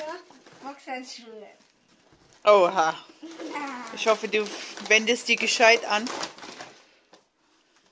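A young girl talks and laughs nearby.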